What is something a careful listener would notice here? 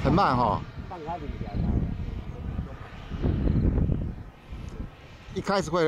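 A jet engine roars overhead.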